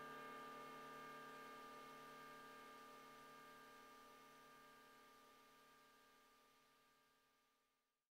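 A synthesizer holds a soft chord that slowly fades away.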